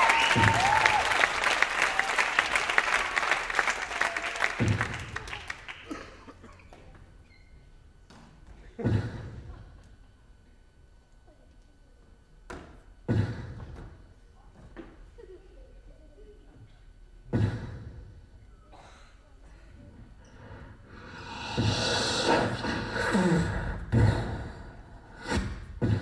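Bare feet thump and stamp on a wooden stage floor.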